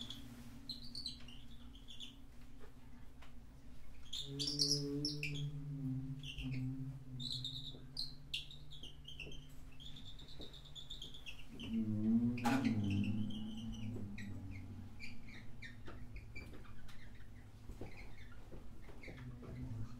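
A piano plays soft, sparse notes.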